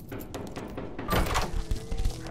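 A door latch clicks open.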